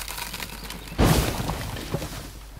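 An axe chops into a tree trunk.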